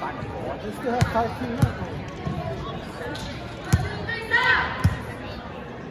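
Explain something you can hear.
A volleyball smacks off hands and thuds on the floor.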